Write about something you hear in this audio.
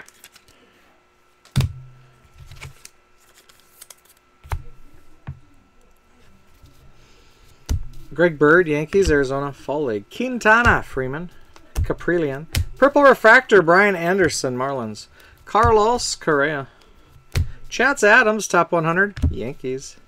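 Trading cards rustle and slide against each other as they are flipped through by hand.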